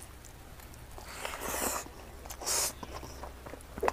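A man chews food noisily with his mouth close by.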